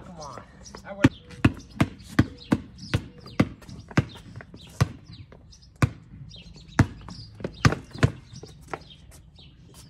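A basketball bounces on pavement again and again.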